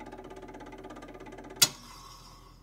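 A gramophone plays an old record.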